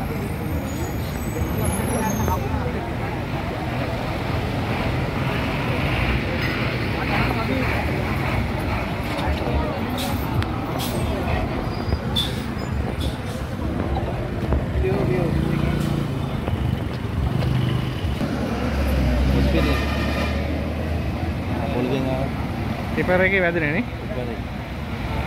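Traffic noise fills an outdoor street.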